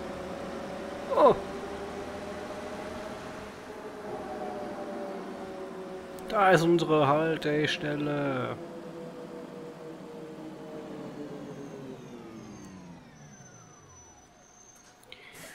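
A bus engine hums steadily and winds down as the bus slows to a stop.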